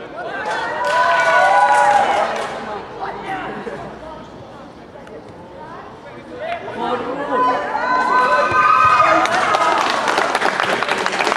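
Male footballers shout to each other across an open field.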